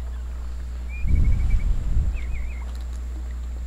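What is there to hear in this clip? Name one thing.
Water splashes and sloshes.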